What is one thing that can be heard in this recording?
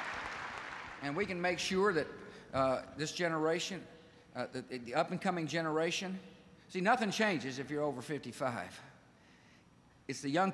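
A man speaks firmly into a microphone.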